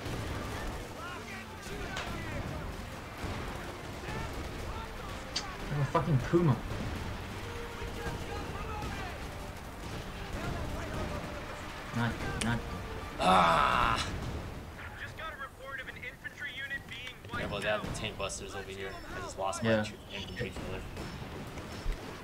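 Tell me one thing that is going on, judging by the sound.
Gunfire and explosions rumble across a battlefield.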